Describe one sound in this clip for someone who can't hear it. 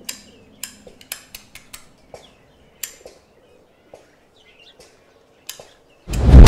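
A lighter clicks repeatedly as it is struck.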